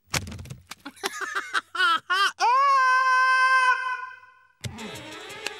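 A small cartoon penguin lets out a long, loud honking call.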